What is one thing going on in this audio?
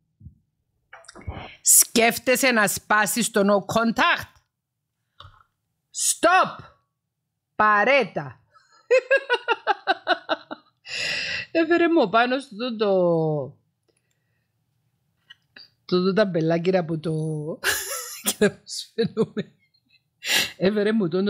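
A woman speaks animatedly and close to a microphone.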